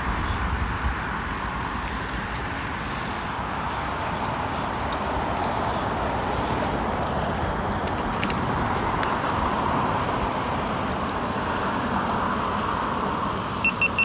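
Traffic hums steadily on a nearby road.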